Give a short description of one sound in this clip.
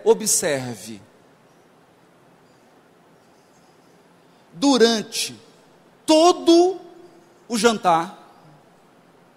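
A young man speaks with animation into a microphone, in short bursts with pauses.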